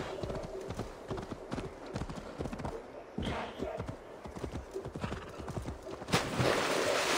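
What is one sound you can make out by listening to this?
Horse hooves thud on a dirt path.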